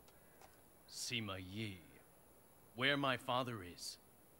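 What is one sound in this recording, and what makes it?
A young man answers firmly.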